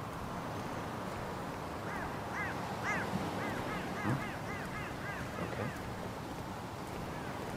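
Footsteps tap on pavement at a walking pace.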